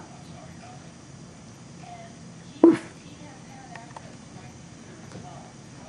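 A small puppy squeaks a rubber toy as it chews on it.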